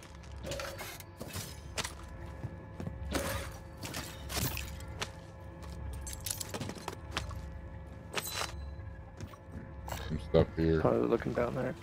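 Footsteps thud across a wooden floor indoors.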